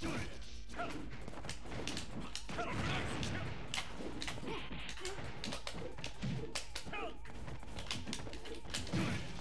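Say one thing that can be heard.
Punches and blasts from a fighting game hit sharply, again and again.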